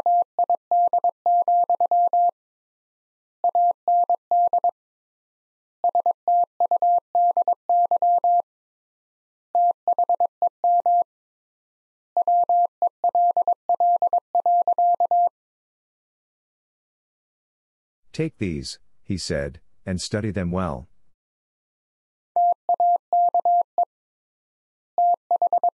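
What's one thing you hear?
A telegraph key taps out Morse code in short, rapid bursts of steady beeps.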